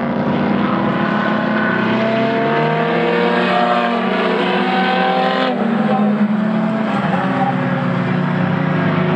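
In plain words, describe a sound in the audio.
Rally car engines roar and rev in the distance, rising and falling in pitch.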